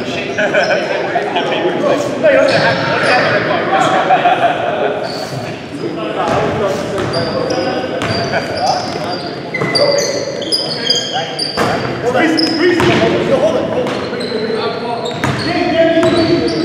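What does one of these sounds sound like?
A basketball bounces on a hard floor with echoing thuds.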